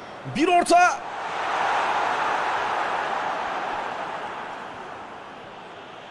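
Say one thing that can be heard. A large stadium crowd swells into a loud cheer, then fades.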